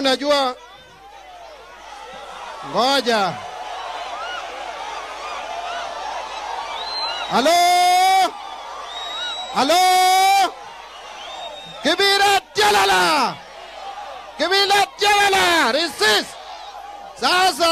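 A large crowd outdoors murmurs and cheers between the shouts.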